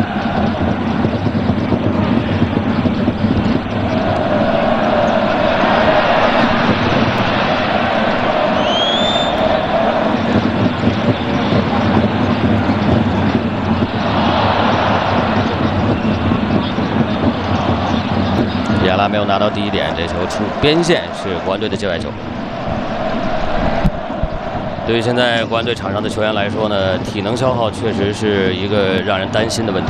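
A large crowd roars and chants in an open stadium.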